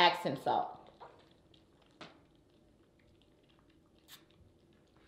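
A woman gulps water from a bottle.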